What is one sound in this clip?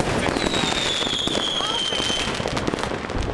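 A firework rocket whistles as it falls in pitch.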